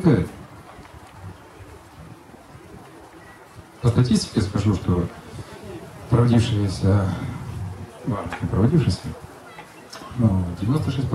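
A man speaks with animation into a microphone, heard through loudspeakers outdoors.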